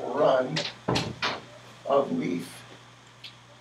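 A man speaks briefly in a room, close by.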